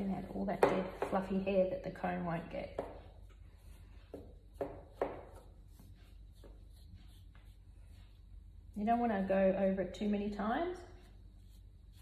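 An older woman talks calmly and closely.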